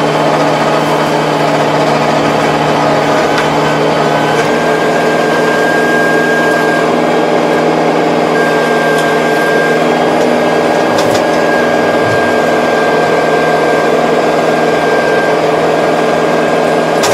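A tractor engine drones steadily up close.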